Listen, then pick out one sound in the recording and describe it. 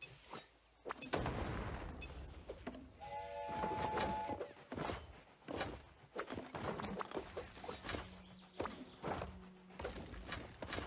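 A small toy-like train rumbles along its tracks.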